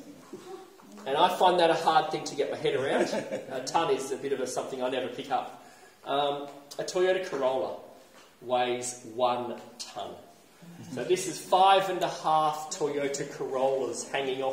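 A man talks clearly and calmly close by, with a slight echo.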